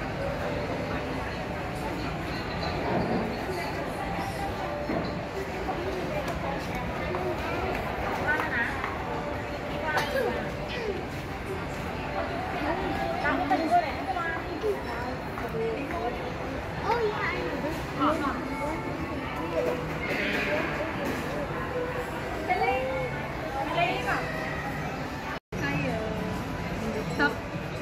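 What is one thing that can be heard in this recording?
A crowd murmurs in a busy indoor hall.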